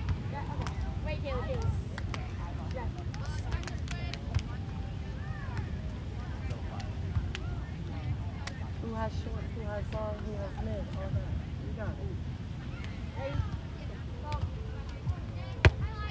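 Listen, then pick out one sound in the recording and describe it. A crowd of young people and adults chatters outdoors nearby.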